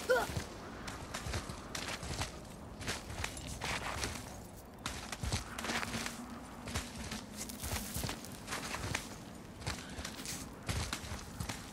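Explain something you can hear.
Hands scrape and grip on rock while climbing.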